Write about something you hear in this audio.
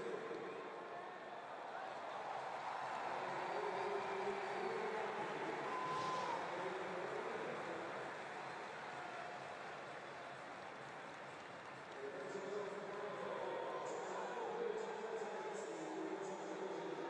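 A large crowd murmurs in a big open arena.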